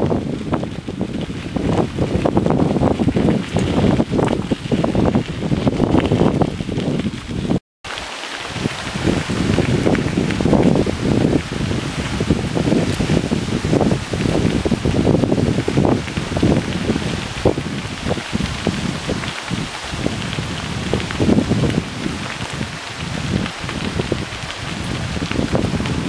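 Bicycle tyres crunch over a gravel path.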